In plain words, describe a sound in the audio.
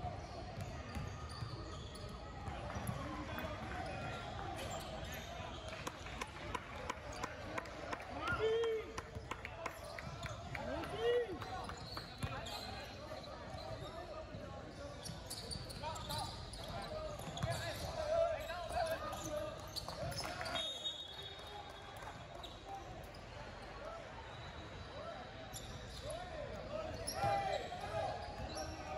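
Sneakers squeak sharply on the wooden floor.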